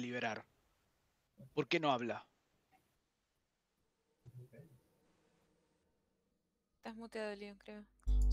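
A woman talks over an online call.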